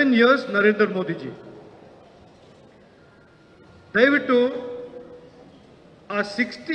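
A man speaks with emphasis into a microphone, in pauses.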